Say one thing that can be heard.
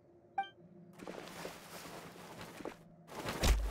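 Metal blades swish sharply through the air.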